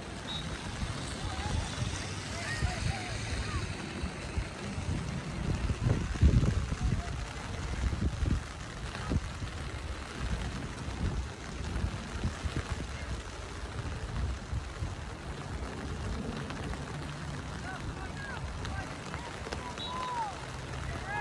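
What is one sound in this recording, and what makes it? Young players shout faintly in the distance.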